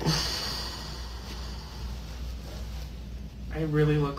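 Soft fabric rustles as a hood is pulled up.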